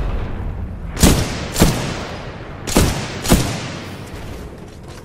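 A heavy rifle fires loud, booming shots several times.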